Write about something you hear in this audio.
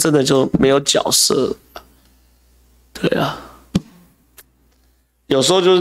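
A man speaks with animation close to a microphone, with pauses.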